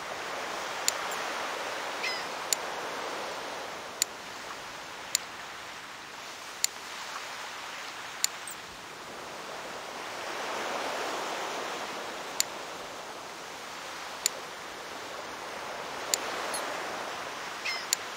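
Menu buttons click sharply, again and again.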